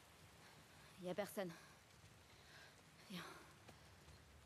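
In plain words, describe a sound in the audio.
A young woman speaks quietly in short phrases.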